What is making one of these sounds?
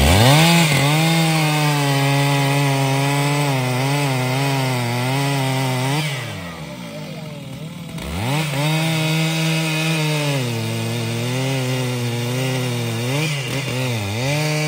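A chainsaw engine roars loudly close by, dropping to idle and revving up again.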